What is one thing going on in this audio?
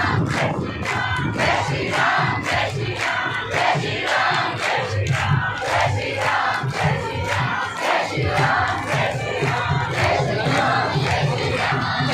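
A large crowd of men and women sings and chants loudly together.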